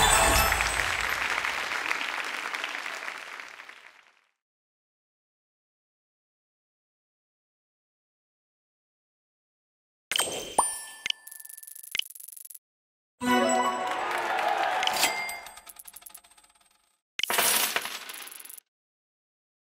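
Bright video game chimes and jingles play in short bursts.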